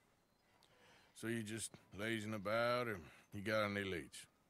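A second man answers calmly in a low voice.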